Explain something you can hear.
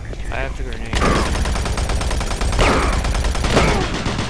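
A gun fires loud, booming shots.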